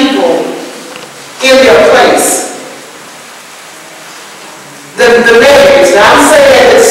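An older woman speaks calmly to an audience.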